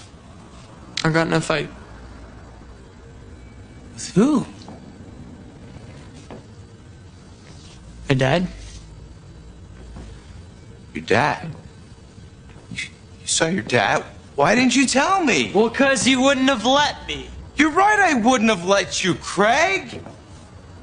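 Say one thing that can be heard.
A young man speaks quietly and tensely.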